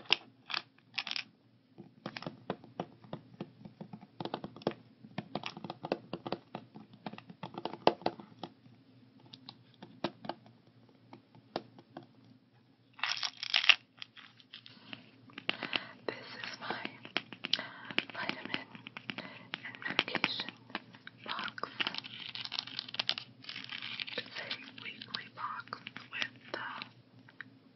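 Plastic pill box lids click and snap open and shut.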